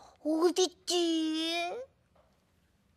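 A woman in a high, childlike voice calls out in a long, sing-song cry.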